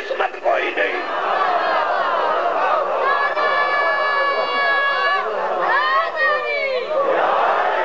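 A crowd of men cries out and wails together.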